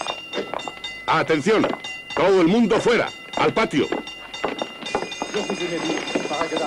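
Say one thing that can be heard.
Men talk.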